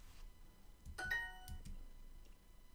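A short, bright chime rings out.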